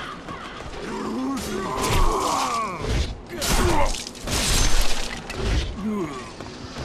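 Swords strike and clash in a fight.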